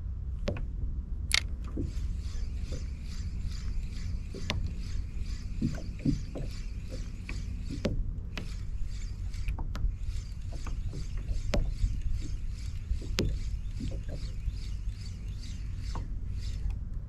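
A fishing reel whirs and clicks as a line is reeled in.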